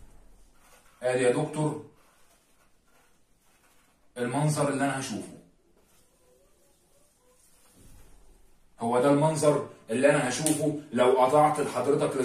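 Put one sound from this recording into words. A man speaks calmly and clearly, close by, in short phrases.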